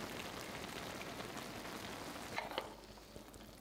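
Chopsticks clack against a pan.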